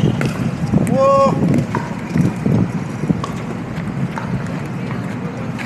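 Paddles knock a plastic ball back and forth outdoors.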